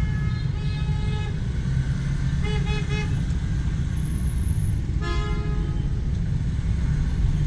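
Motorbikes and scooters drone past in busy street traffic.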